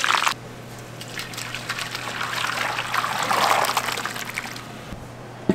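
A thick sauce pours and splashes out of a pan into a tray.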